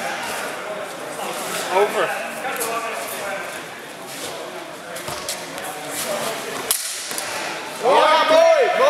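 Spectators chatter in a large echoing hall.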